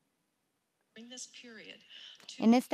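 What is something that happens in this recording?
A woman speaks calmly, heard through a small loudspeaker.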